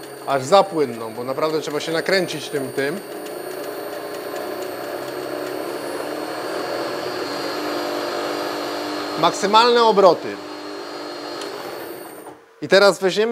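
A drill press motor hums steadily, then stops.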